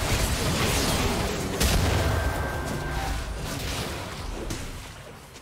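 Game spell effects burst and crackle in quick succession.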